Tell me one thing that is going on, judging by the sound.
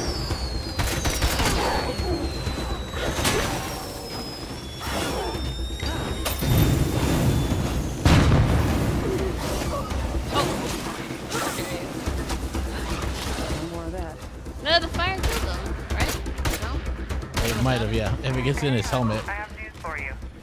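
Creatures snarl and growl.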